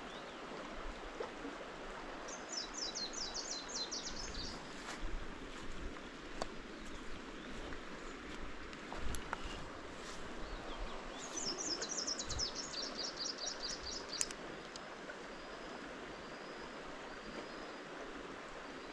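A shallow stream flows and gurgles gently outdoors.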